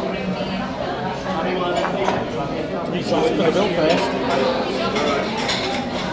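A young man talks to the microphone close by.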